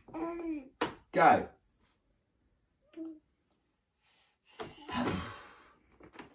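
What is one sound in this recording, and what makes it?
A man talks playfully to a baby close by.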